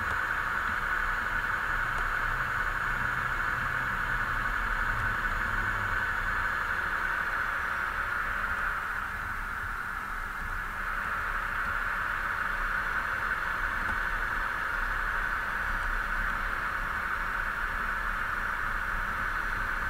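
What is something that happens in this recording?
A truck engine hums steadily while driving along a road.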